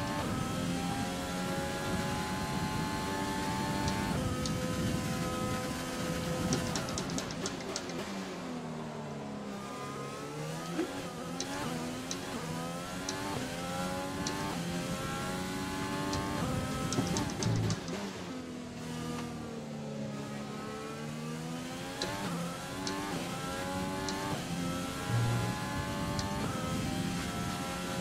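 A racing car engine screams, rising and falling in pitch as it shifts gears and brakes.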